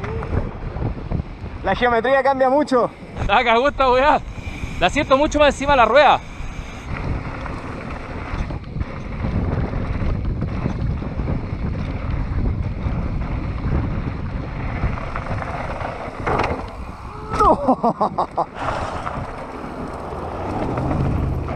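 Bicycle tyres rumble and crunch over a rough dirt trail.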